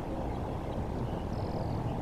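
A large bird flaps its wings over water.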